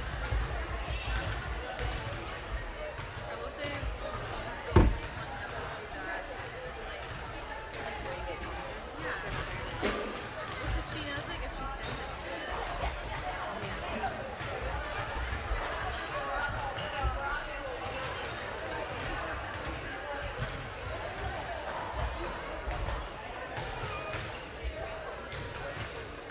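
A crowd chatters faintly in a large echoing gym.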